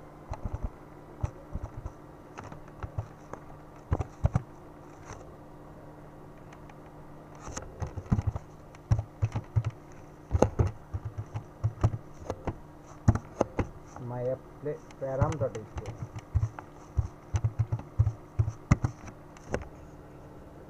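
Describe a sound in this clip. Keyboard keys click in quick bursts of typing.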